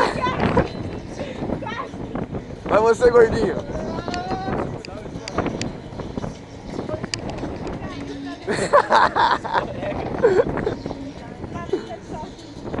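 Young men and women talk and laugh nearby.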